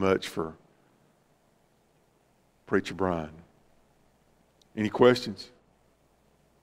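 A middle-aged man speaks calmly in short phrases through a microphone in a large room.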